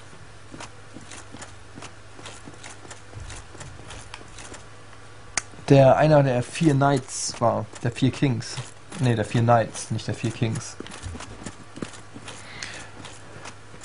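Footsteps clank on stone in a steady run.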